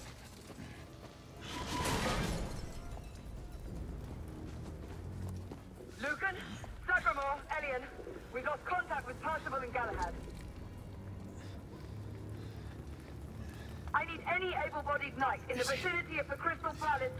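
A fire crackles nearby.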